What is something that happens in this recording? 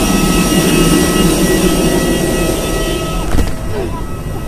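An aircraft engine hums and whines loudly nearby.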